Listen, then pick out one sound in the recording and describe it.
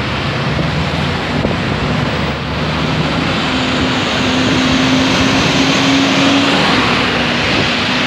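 A bus engine drones as it pulls past nearby.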